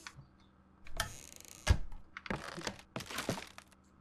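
A wooden cabinet door swings open with a creak.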